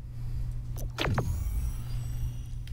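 A game chime sounds as players join.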